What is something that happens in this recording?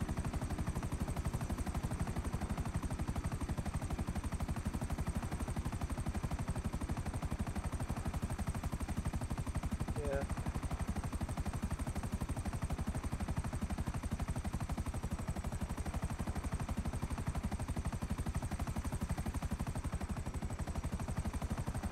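A helicopter's rotor thumps steadily and loudly.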